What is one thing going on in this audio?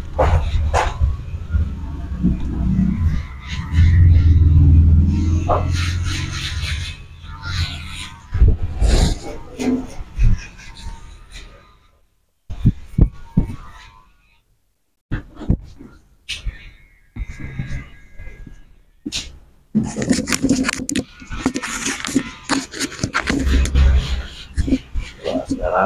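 Hands slap and pat a man's back and shoulders.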